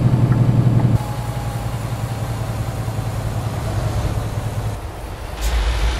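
A truck engine rumbles as a truck passes on the road.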